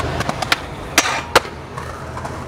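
A skateboard lands hard with a loud clack.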